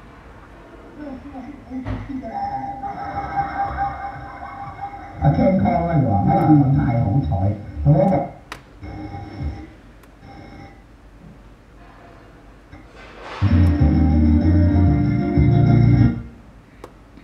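A car radio plays through a small loudspeaker.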